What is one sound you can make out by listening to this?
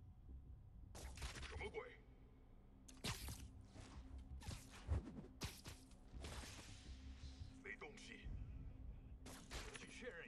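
Punches and kicks land with sharp thuds during a fight.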